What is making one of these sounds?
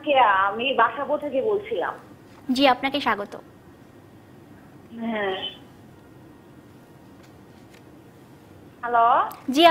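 A young woman speaks calmly and clearly into a microphone, in short phrases.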